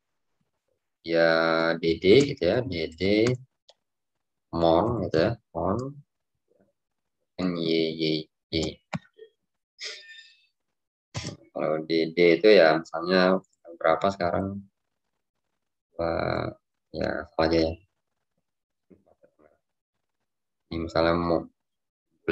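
A man speaks calmly through an online call microphone, pausing between phrases.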